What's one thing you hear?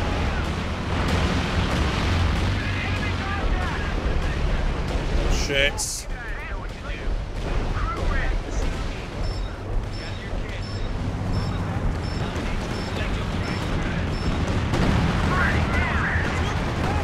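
Gunfire and explosions rumble in a battle game.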